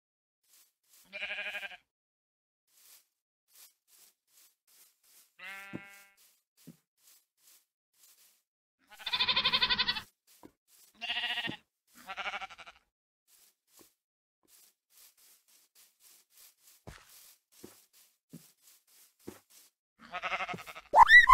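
A sheep bleats.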